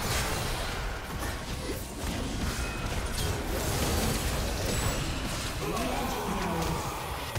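Game spells and weapons clash and burst in a fast fight.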